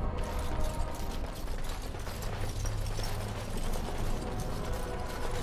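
Armoured footsteps clank on a stone floor.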